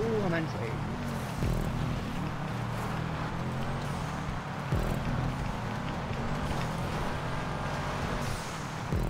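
Car tyres crunch over dirt and gravel.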